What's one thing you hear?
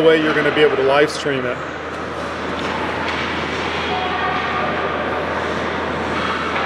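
Ice skates scrape and hiss across ice.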